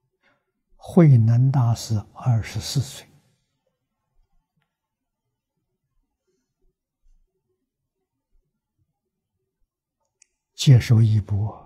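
An elderly man speaks calmly and slowly into a close microphone.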